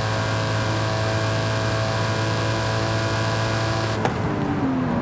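Wind rushes past a fast-moving car.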